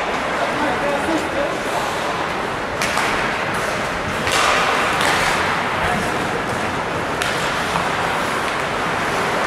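The noise of the rink echoes through a large hall.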